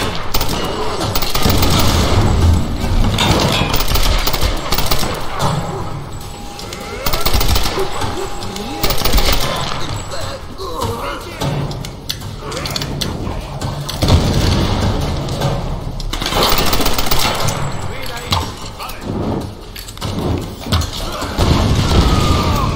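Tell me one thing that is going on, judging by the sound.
A rifle fires sharp, loud shots.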